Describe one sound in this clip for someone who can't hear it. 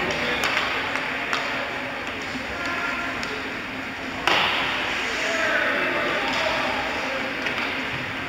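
Ice skates scrape across an ice rink.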